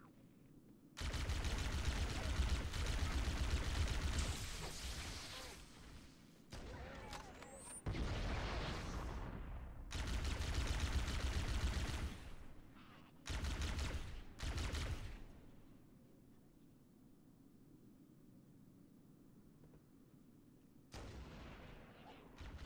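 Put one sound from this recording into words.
A plasma rifle fires rapid bursts of energy bolts.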